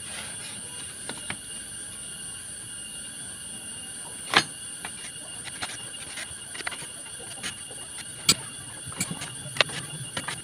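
A pencil scratches lines on wood.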